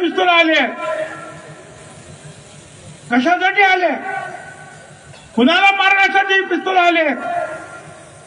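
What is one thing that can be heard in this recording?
An elderly man speaks forcefully through a loudspeaker, with pauses between phrases, outdoors.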